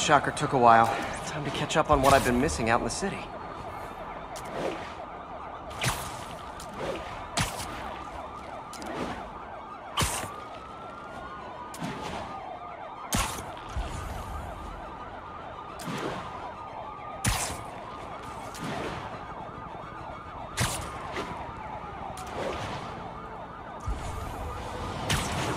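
Webs shoot out with sharp, snapping thwips again and again.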